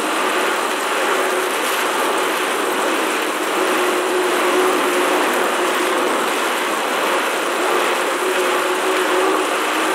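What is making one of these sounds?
An indoor bike trainer whirs steadily as someone pedals.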